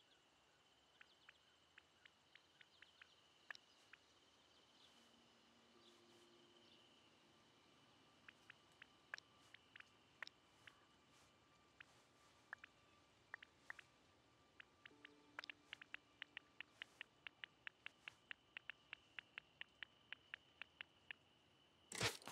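Short interface clicks tick as menu choices change, quickening into a rapid run.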